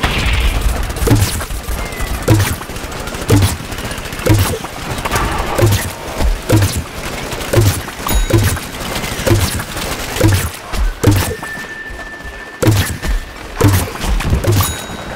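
A gun fires rapid, regular shots.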